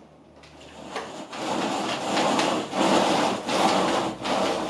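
Window blinds rattle as they are pulled up.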